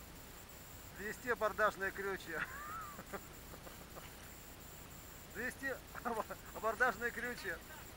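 Men talk and call out to each other nearby, outdoors on open water.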